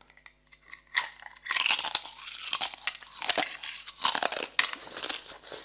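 A young woman bites and crunches loudly on ice close to a microphone.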